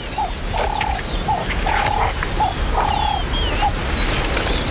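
A leopard cub calls with short, repeated mews.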